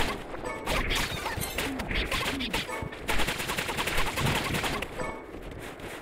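Sword slashes and hit effects clatter rapidly in a video game fight.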